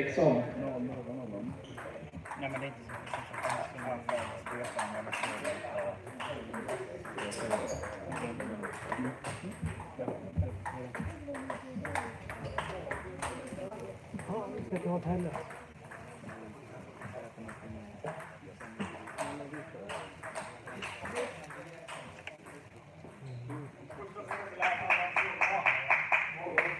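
A table tennis ball clicks quickly back and forth between paddles and the table in an echoing hall.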